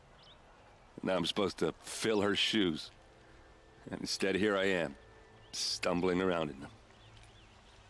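A man speaks calmly in a deep voice.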